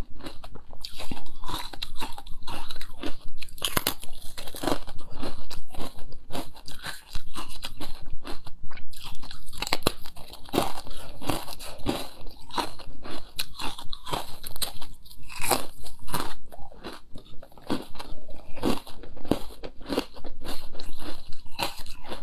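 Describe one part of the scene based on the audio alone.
A young woman chews wetly close to a microphone.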